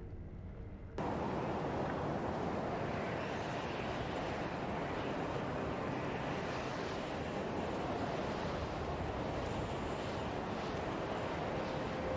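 Wind howls steadily through a snowstorm outdoors.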